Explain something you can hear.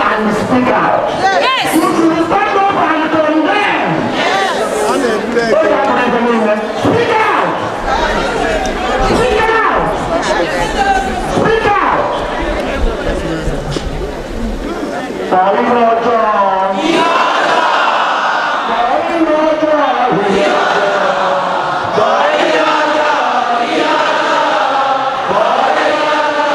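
A large crowd of women sings together outdoors.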